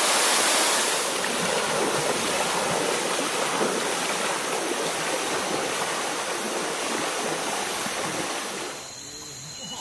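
Footsteps slosh through shallow river water.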